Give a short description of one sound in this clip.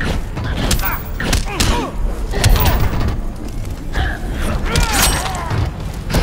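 Whooshing swings and bright energy zaps sound between blows.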